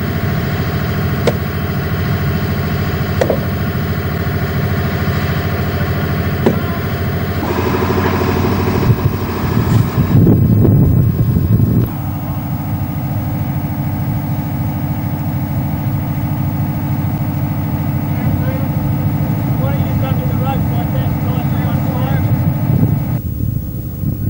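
A heavy machine engine rumbles steadily.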